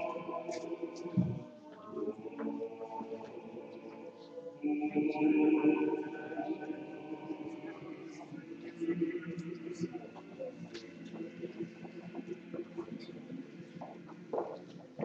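A man chants slowly in a large echoing room.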